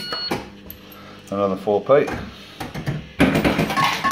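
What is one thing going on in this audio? Slot machine reels whir as they spin and clunk to a stop.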